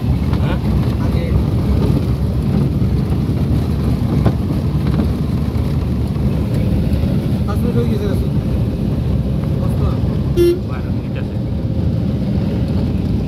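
Tyres roll over a rough road.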